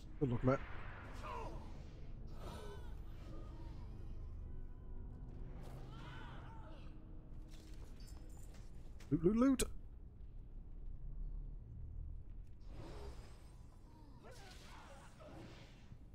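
Weapons clash and creatures roar in a battle.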